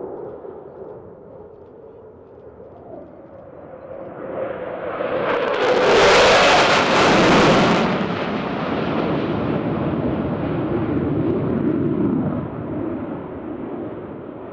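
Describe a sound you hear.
A jet engine roars loudly overhead, rising to a peak and then rumbling on.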